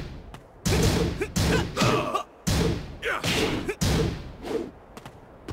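A fighter grunts and shouts with each strike.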